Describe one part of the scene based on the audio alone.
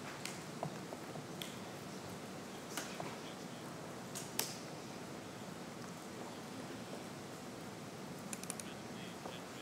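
Keys click on a keyboard now and then.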